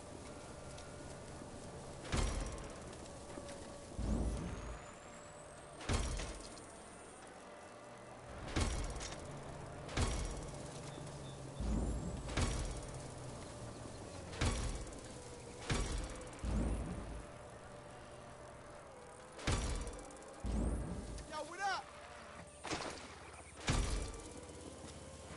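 Bicycle tyres roll over grass and pavement.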